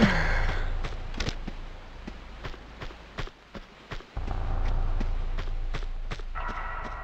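Footsteps run across the ground.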